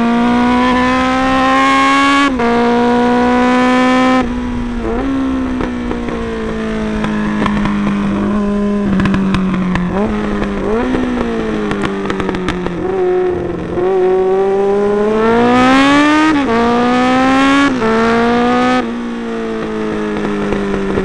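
A motorcycle engine roars loudly up close, its pitch rising and falling as it shifts gears.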